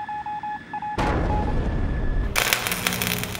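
A jet plane roars overhead.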